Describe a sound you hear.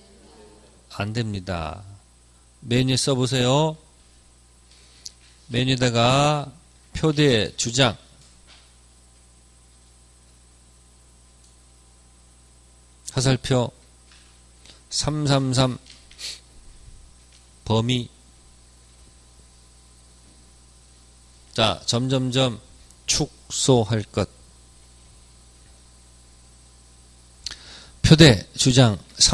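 A man speaks into a microphone in short bursts with long pauses, heard through a loudspeaker.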